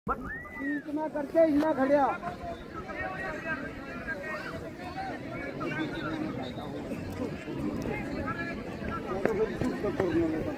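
A crowd of men chatters and shouts outdoors nearby.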